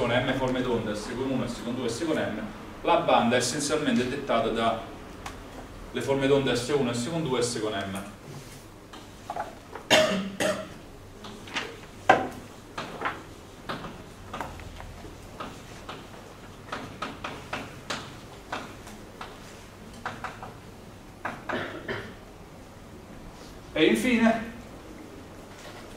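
A young man speaks calmly, lecturing.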